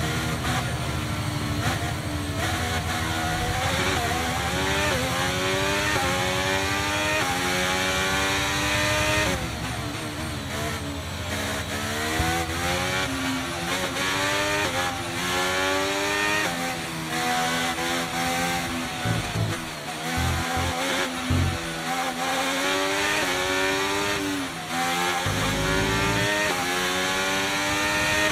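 A racing car engine screams at high revs, rising through the gears and dropping as it brakes.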